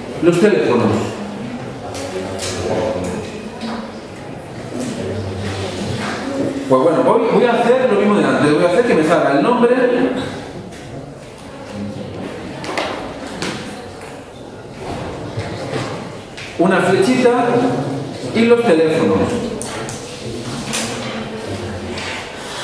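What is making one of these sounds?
A man lectures calmly through a microphone in an echoing hall.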